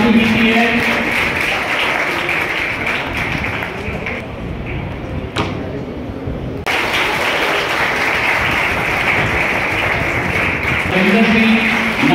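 Several people clap their hands in steady applause.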